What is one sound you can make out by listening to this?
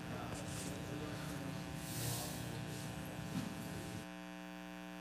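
A man speaks with animation through a microphone and loudspeakers in a large room.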